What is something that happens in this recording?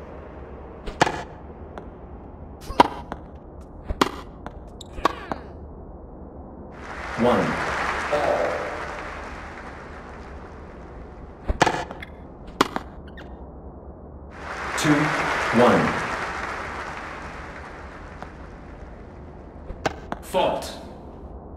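A tennis ball is hit back and forth with sharp pops.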